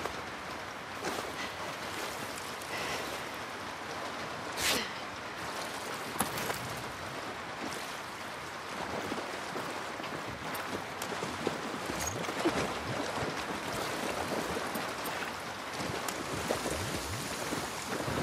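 Footsteps splash slowly through shallow water.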